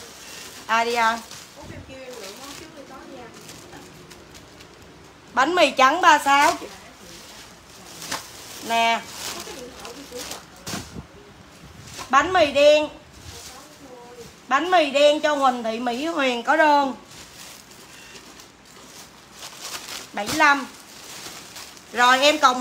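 Plastic bags rustle and crinkle as they are handled.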